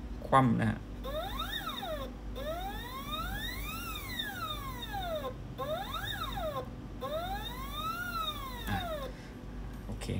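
A stepper motor whines, its pitch rising and falling again and again.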